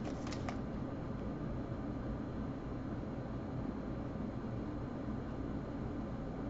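Trading cards slide and rustle softly between fingers.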